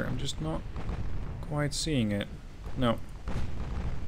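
Heavy naval guns boom.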